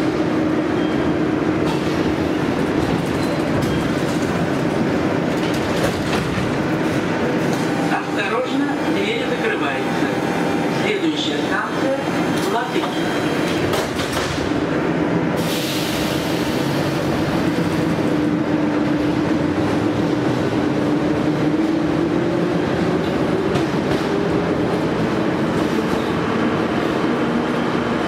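A subway train hums and rumbles steadily.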